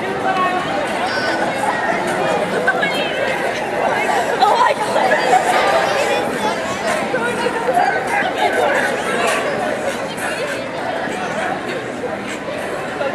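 A crowd of young people chatters and shouts in a large echoing hall.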